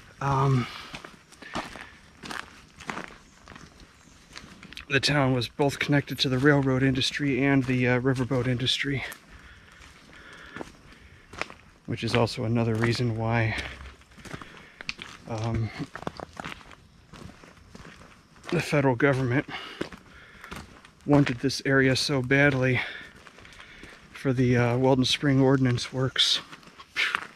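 A middle-aged man talks calmly and close by, with pauses between phrases.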